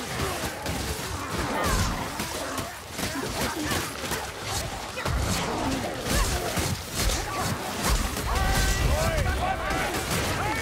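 Monsters snarl and growl nearby.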